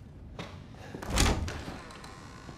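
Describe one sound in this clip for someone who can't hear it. A wooden cabinet door bangs shut.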